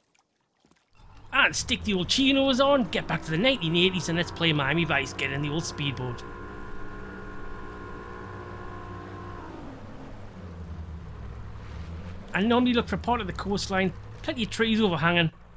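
A motorboat engine roars steadily as the boat speeds across water.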